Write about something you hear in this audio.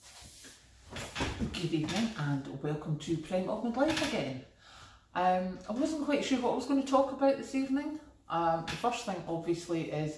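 A middle-aged woman speaks close to a microphone with animation.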